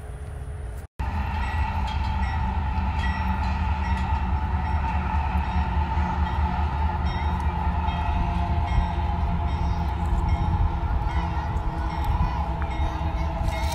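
A freight train rumbles past in the distance.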